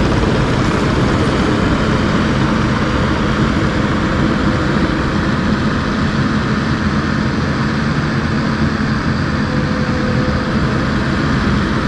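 A compact track loader's tracks crunch over gravel as it drives away.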